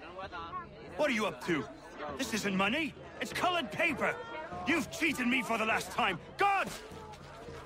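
A man argues loudly and angrily, then shouts.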